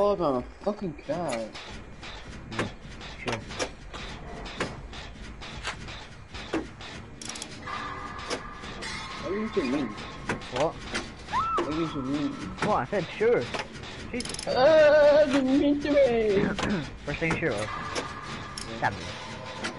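A machine rattles and clicks steadily.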